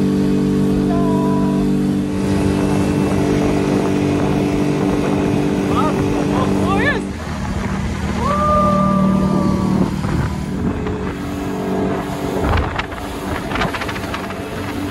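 A boat engine roars steadily close by.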